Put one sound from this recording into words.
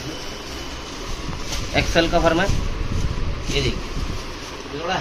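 Fabric rustles as a shirt is handled and unfolded.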